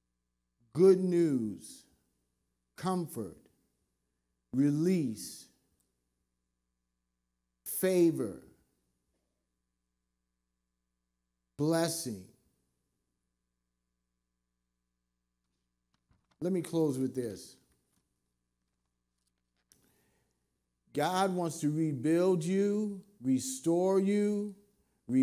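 A middle-aged man speaks slowly and deliberately into a microphone, with long pauses.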